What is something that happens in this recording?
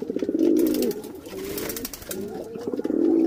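A pigeon flaps its wings.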